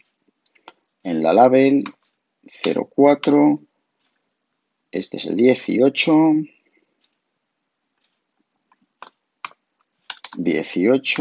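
A middle-aged man talks calmly into a nearby microphone, in short bursts with pauses.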